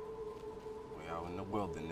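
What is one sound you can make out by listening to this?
A man speaks into a close microphone.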